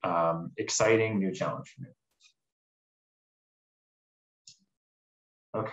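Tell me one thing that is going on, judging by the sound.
A young man speaks calmly through an online call microphone.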